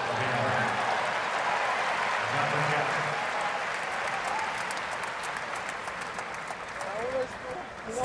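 A large crowd cheers and applauds loudly in an open stadium, then fades.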